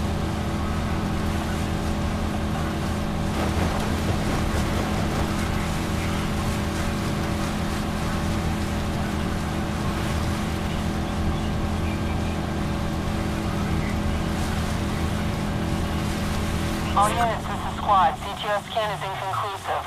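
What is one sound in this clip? Water splashes and hisses against a speeding boat's hull.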